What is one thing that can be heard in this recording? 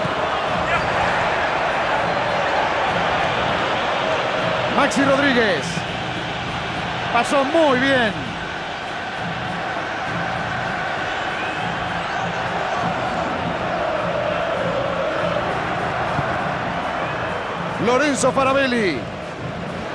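A large stadium crowd roars and murmurs steadily throughout.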